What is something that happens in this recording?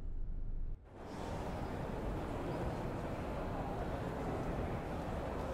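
A stopped train hisses steadily in a large echoing station.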